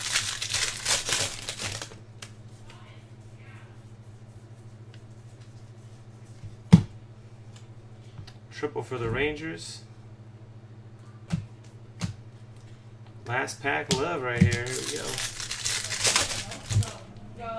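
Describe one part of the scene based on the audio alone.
Plastic wrappers crinkle as hands tear them open.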